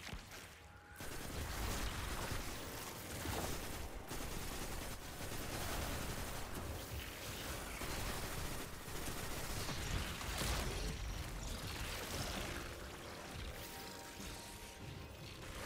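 Guns fire in rapid bursts with crackling energy blasts.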